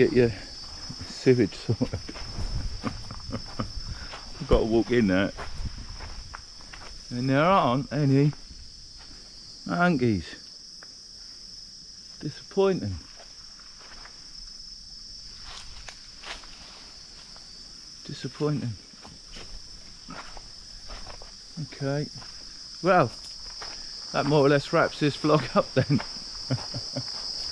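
A middle-aged man talks with animation close by, in bursts with pauses.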